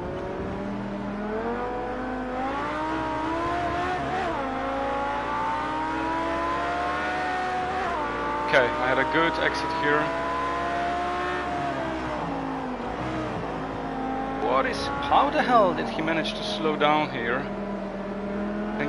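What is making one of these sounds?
A racing car engine roars, rising in pitch and dropping as it shifts gears.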